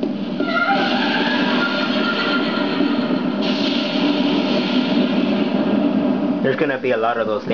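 A steady roar of a blast plays from a television loudspeaker.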